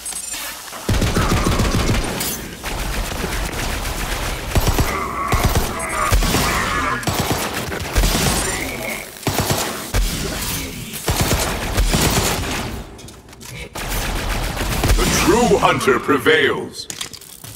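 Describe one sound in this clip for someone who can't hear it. Gunfire bursts rapidly and loudly.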